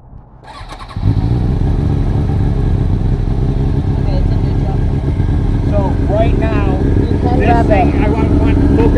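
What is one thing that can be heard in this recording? A motorcycle engine starts up and idles with a loud, steady rumble.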